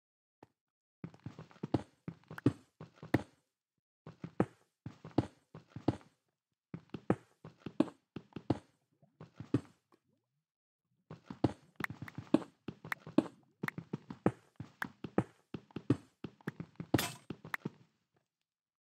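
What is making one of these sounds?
A pickaxe chips rapidly at stone in quick bursts of knocks.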